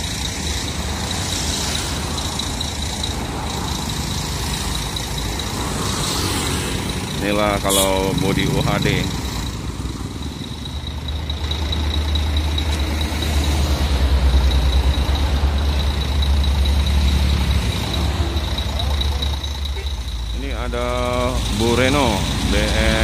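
A large diesel engine idles with a deep, steady rumble.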